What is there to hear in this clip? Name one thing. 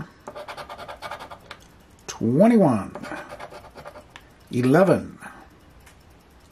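A plastic scraper scratches rapidly across a card.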